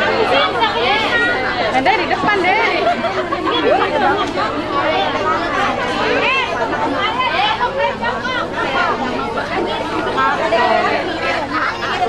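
Many young children chatter and call out all at once, close by.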